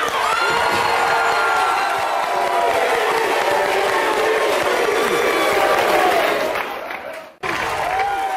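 A studio audience cheers and claps loudly.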